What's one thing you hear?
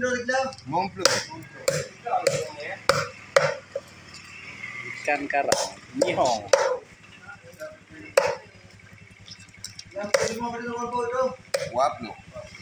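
A heavy knife chops down on a wooden block with sharp knocks.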